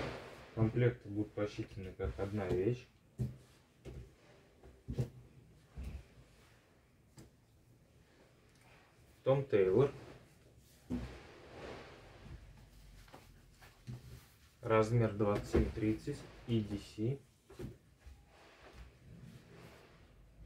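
Fabric rustles softly as clothes are handled.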